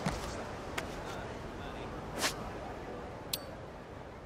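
A menu chimes with a short click.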